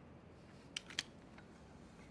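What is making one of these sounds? A record sleeve rustles as it is handled.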